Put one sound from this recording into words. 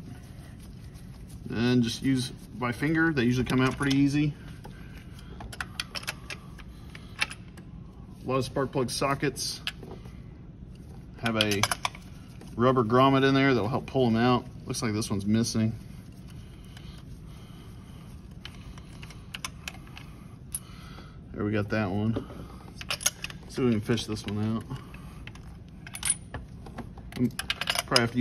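Small metal and plastic parts click and rattle under working hands.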